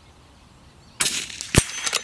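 A .22 rifle fires a single shot outdoors.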